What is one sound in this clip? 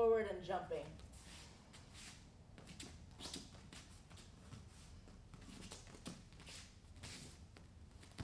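Bare feet shuffle and thud on a mat.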